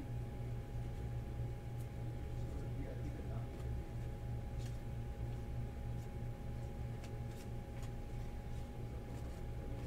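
Trading cards rustle and click as hands shuffle through them.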